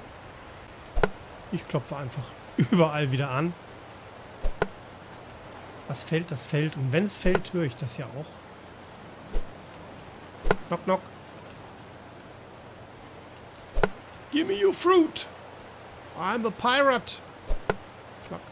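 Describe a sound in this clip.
A pickaxe strikes a tree trunk with sharp knocks.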